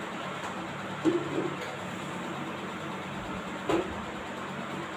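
A metal pot clinks against a stovetop.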